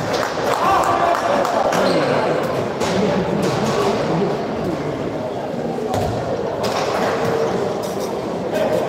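A ball bounces on the floor.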